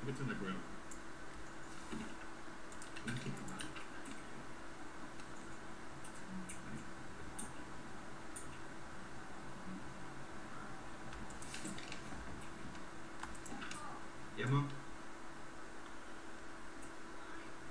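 Short, soft menu clicks sound now and then.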